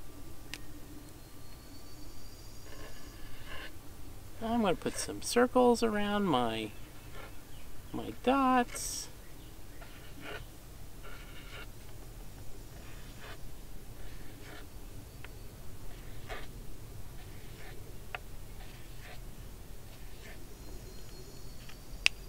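A marker scratches and squeaks on paper.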